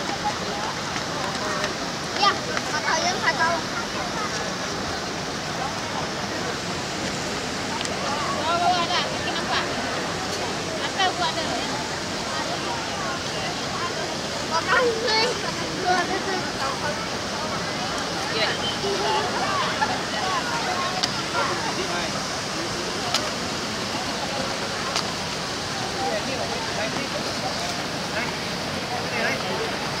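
Voices of a crowd chatter in the distance outdoors.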